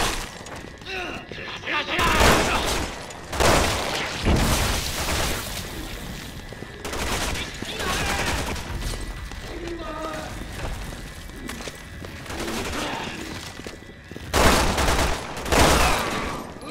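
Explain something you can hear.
Gunshots ring out in a large echoing hall.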